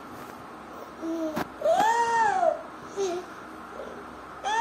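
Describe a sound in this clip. A toddler squeals and babbles close by.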